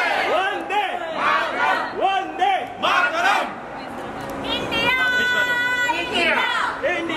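A crowd of men and women shouts and cheers close by.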